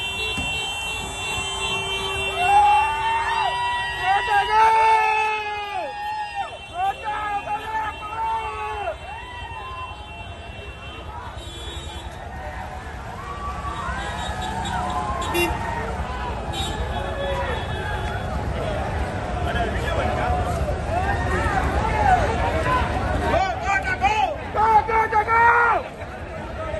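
Motorcycle engines idle and rumble nearby.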